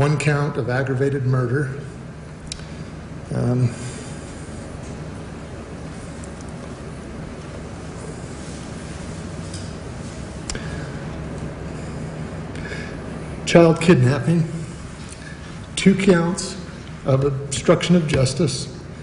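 A middle-aged man speaks slowly and with emotion into a microphone, with long pauses.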